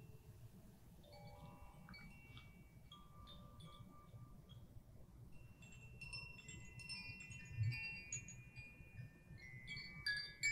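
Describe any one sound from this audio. Small hand-held chimes ring with bright, tinkling tones.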